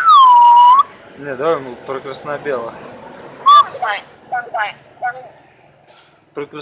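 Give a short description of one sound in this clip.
A mynah bird chatters and squawks in short bursts.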